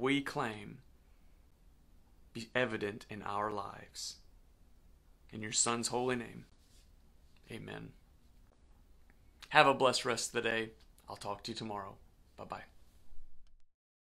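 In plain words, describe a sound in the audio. A man speaks calmly and warmly, close to a microphone.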